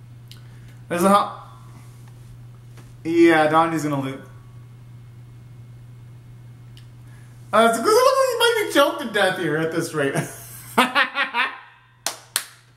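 A young man sings loudly in short bursts close by.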